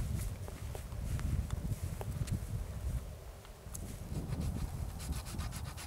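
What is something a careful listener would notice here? Footsteps crunch through snow and dry grass.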